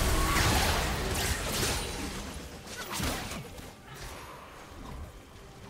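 Magic spell effects whoosh and crackle during a fight.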